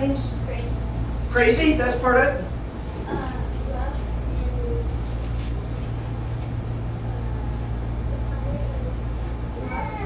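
A middle-aged man speaks to a room in a calm, lecturing voice.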